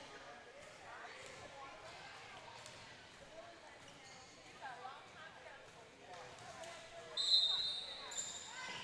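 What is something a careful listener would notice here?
A crowd of girls chatters nearby.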